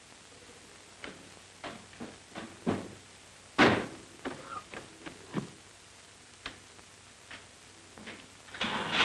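Small knocks and clatters come from inside a car.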